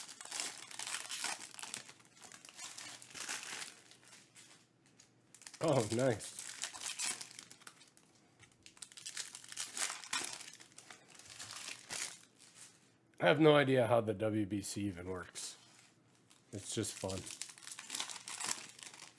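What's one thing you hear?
Foil card packs crinkle and rustle as hands tear them open.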